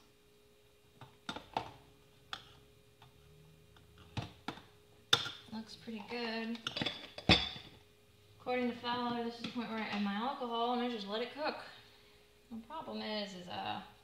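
A spoon knocks against the rim of a pot.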